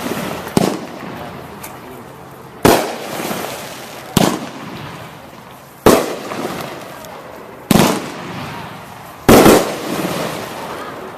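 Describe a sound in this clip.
Sparks crackle and sizzle after each firework burst.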